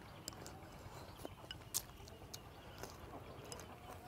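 Chopsticks click against a bowl.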